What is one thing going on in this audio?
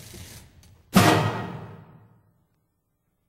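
Drums and cymbals crash loudly in a large hall.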